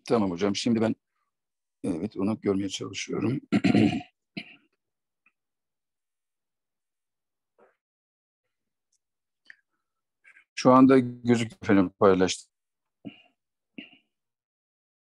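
A middle-aged man speaks calmly over an online call, in short bursts with pauses.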